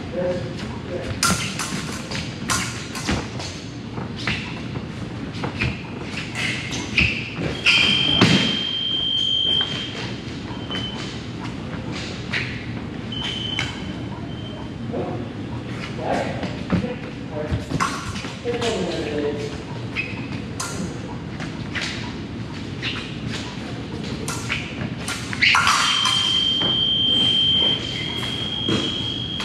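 Shoes squeak and thump on a wooden floor.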